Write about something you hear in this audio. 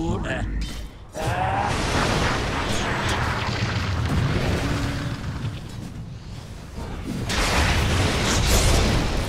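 Magic spells whoosh and crackle in a fierce game battle.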